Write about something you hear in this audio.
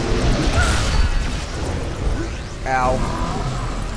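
A loud blast roars and rumbles.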